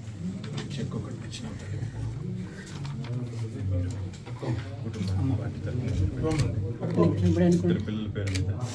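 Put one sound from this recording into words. Paper rustles as papers are handled.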